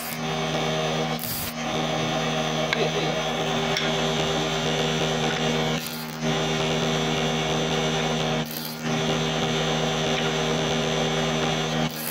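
A woodworking spindle machine whirs with a steady high hum.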